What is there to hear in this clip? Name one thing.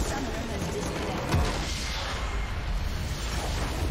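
A crystal structure shatters with a loud crash.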